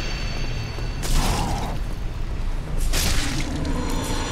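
Heavy blows and whooshes of weapons sound in a fight.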